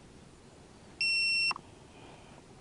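A remote controller gives a long electronic beep.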